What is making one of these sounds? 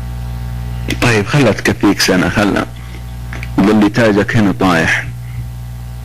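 A man speaks through a microphone in short bursts.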